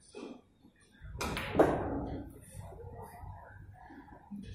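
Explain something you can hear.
Billiard balls knock together as they are gathered by hand.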